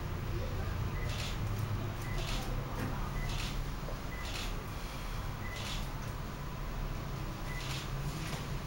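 Scissors snip through hair in short, regular bursts.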